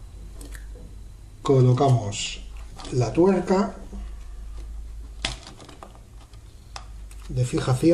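A small plastic device clicks and rattles as hands handle it.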